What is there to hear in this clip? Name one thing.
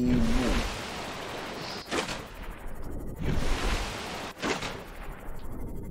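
Water splashes and rushes as a small submarine dives under the surface.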